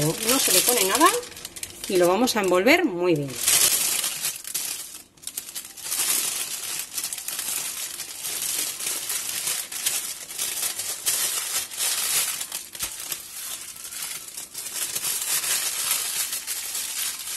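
Paper crinkles and rustles as it is folded and wrapped.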